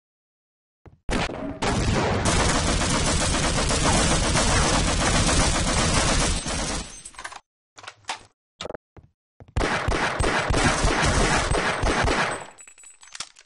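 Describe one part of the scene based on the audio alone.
A machine gun fires long rapid bursts that echo loudly.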